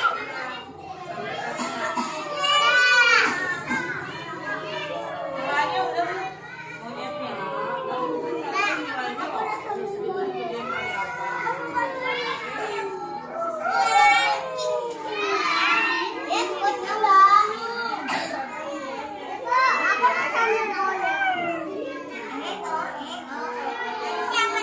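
Young children chatter and call out together close by.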